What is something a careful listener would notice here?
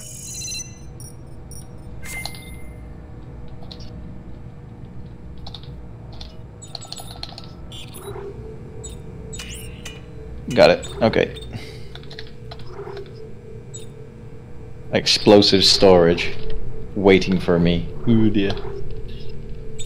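Short electronic blips sound as menu choices are made.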